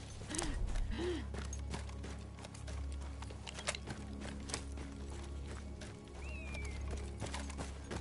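Footsteps crunch on dry, stony ground.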